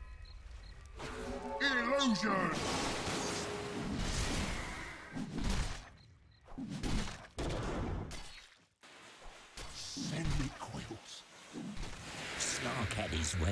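Magic spells burst and weapons clash in a fantasy battle.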